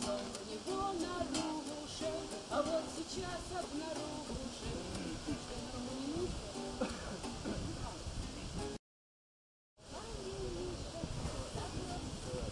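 A young woman sings close by.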